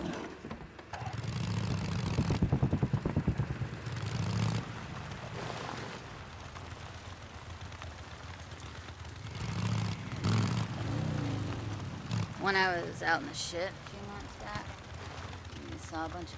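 A motorcycle engine rumbles and revs.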